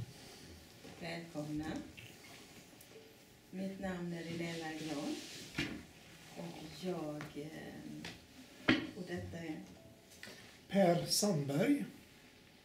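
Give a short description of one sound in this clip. A middle-aged woman speaks calmly.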